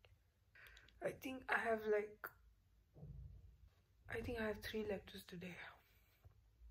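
A young woman speaks softly and sleepily, close by.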